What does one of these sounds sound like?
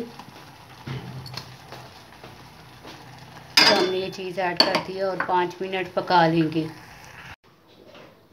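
Thick sauce bubbles and pops gently in a pot.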